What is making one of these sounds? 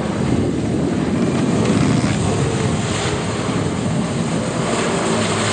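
A jet ski engine roars steadily as it speeds across the water.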